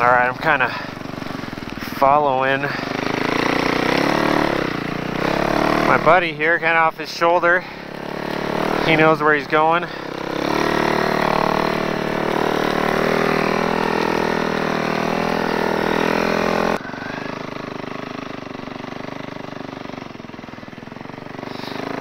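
A snowmobile engine drones close by.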